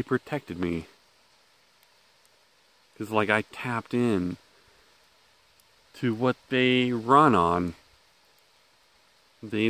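A middle-aged man speaks close to the microphone in short, animated bursts.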